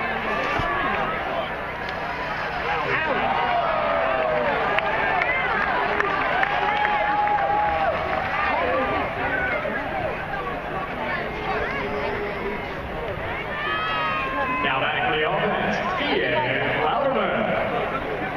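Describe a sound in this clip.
A large outdoor crowd chatters and calls out steadily throughout.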